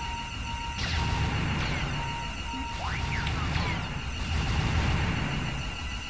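Explosions boom as spacecraft blast asteroids.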